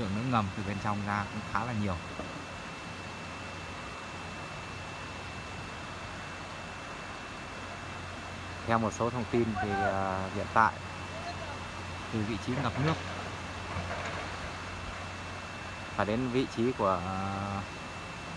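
Water trickles over stones.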